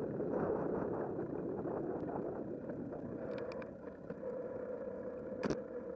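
Tyres roll steadily over a paved path.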